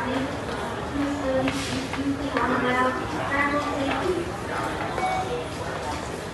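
A crowd of people murmurs and chatters in an echoing hall.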